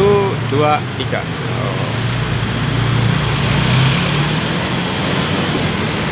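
A large bus rumbles past close by.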